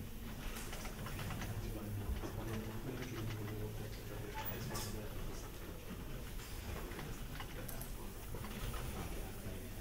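A board eraser rubs across a chalkboard.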